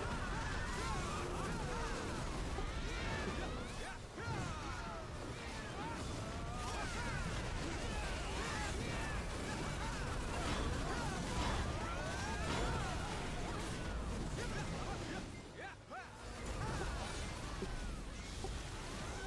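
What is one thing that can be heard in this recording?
Weapons clash and magic bursts in a hectic battle.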